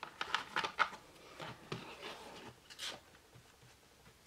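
Cards rustle softly as they are spread out.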